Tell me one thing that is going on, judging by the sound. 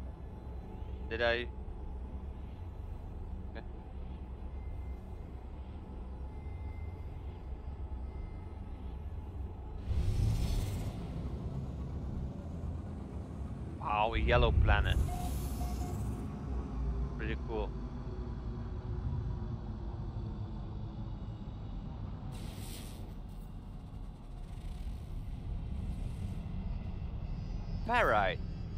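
A spaceship engine rumbles with a low, steady roar.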